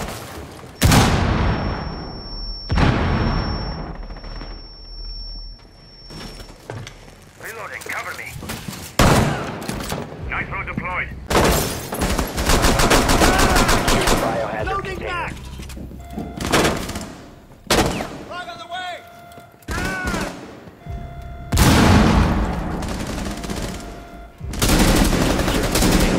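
Rifle shots crack out in short bursts.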